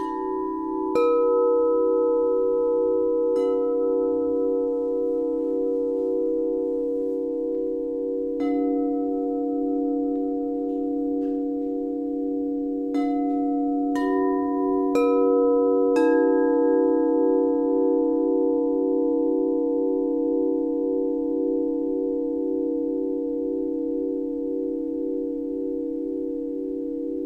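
Crystal singing bowls are struck and ring out with long, overlapping tones.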